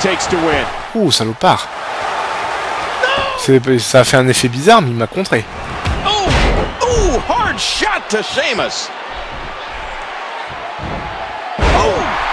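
Heavy bodies thud onto a wrestling mat.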